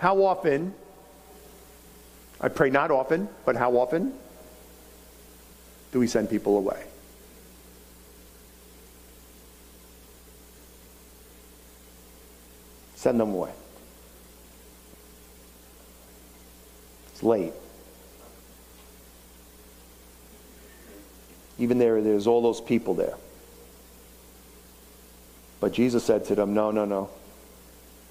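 A middle-aged man speaks slowly with long pauses through a microphone.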